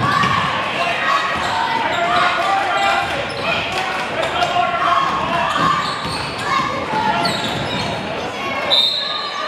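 Sneakers squeak on a hard court.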